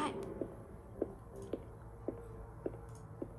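Footsteps thud on a stone floor at a steady walking pace.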